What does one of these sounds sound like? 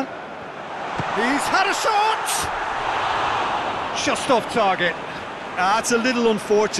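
A stadium crowd roars and then fades.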